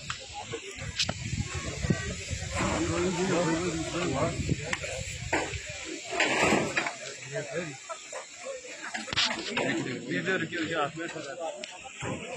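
A crowd of men talk and shout outdoors.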